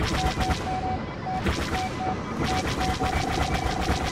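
A beeping lock-on tone sounds.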